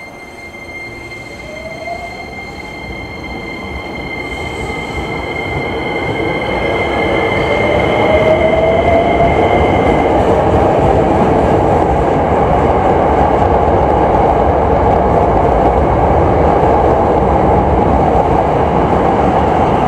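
A train pulls away and rumbles louder as it gathers speed.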